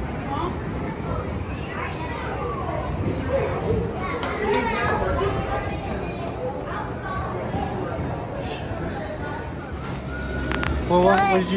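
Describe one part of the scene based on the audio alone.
A crowd chatters in a roofed space.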